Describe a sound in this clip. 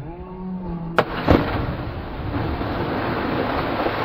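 Two people splash into the water.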